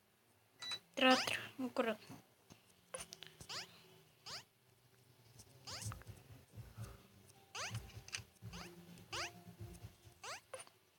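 Short electronic game sound effects chirp with quick falling tones, again and again.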